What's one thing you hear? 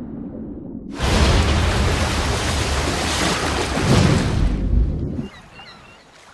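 A wave crashes and rushes loudly.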